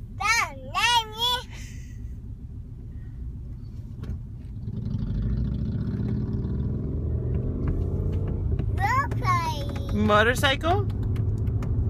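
A toddler speaks in a high, singsong voice close by.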